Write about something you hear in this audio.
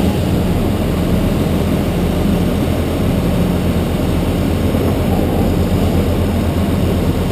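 A cement mixer truck's engine rumbles steadily close by.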